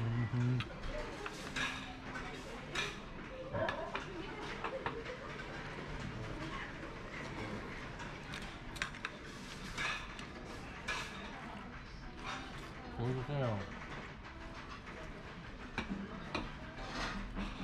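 Chopsticks and a fork click against ceramic dishes.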